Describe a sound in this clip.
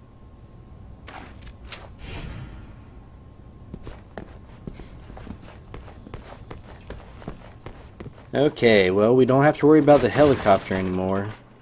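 Footsteps tread on a hard, gritty floor.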